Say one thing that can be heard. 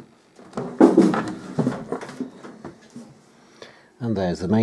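Hands tap and rattle against a metal case.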